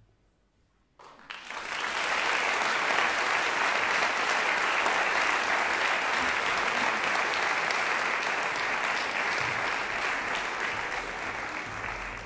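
An audience claps loudly in a large hall.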